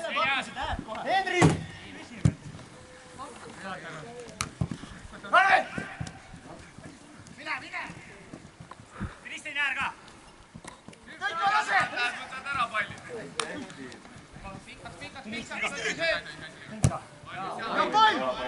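Football players shout to each other across an open field outdoors.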